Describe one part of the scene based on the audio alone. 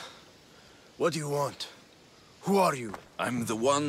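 A man asks questions in a tense, gruff voice.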